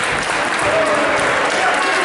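A man claps his hands nearby.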